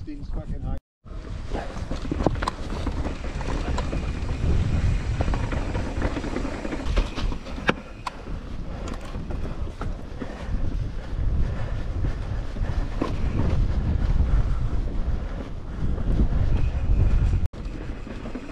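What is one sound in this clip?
Mountain bike tyres rumble and rattle over a stone path.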